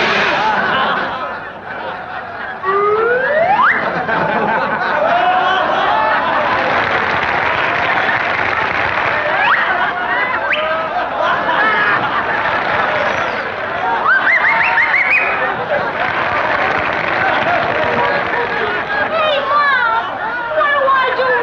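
A large crowd of men laughs loudly and heartily.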